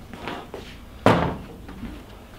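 A plastic storage box thumps down onto a pickup truck bed.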